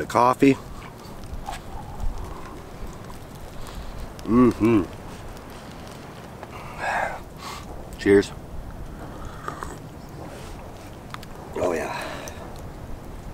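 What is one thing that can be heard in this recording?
A man speaks in short bursts close by, outdoors.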